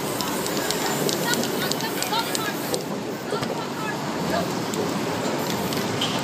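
A hand rubs and dabs on a painted sheet.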